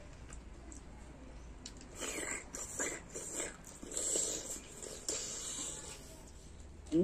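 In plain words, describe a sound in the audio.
A middle-aged man chews and slurps food noisily close by.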